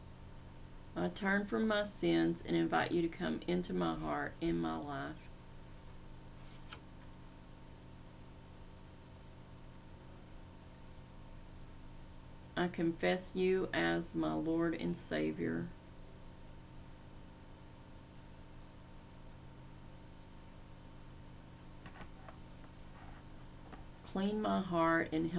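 A middle-aged woman speaks calmly and slowly into a nearby microphone, pausing between phrases.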